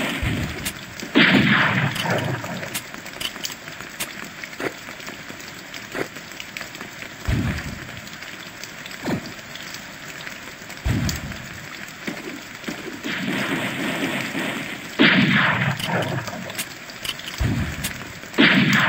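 Explosions boom with deep thuds.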